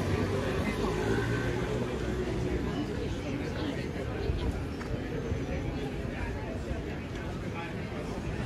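A busy street hums with the murmur of passers-by outdoors.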